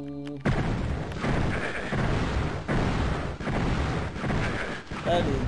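Magic weapon blasts fire again and again with a whooshing burst.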